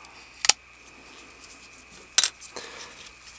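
A folding utility knife clicks sharply as its blade snaps into place.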